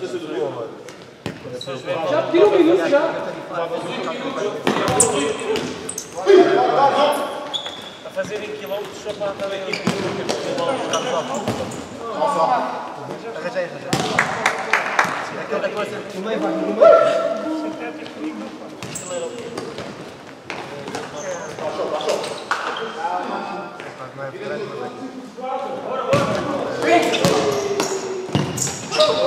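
A ball is kicked with sharp thuds that echo in a large hall.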